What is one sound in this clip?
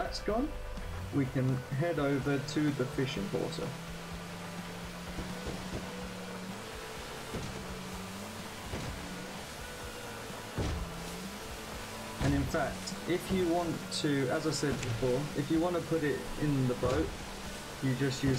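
Water splashes and slaps against a boat's hull.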